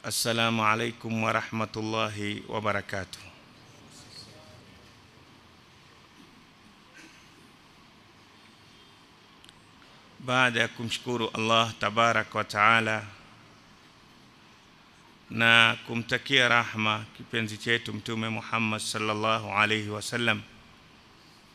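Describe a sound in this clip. A middle-aged man recites in a chanting voice through a microphone, in bursts with pauses between them.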